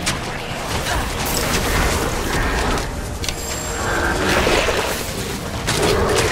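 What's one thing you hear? Weapons strike and slash at monsters.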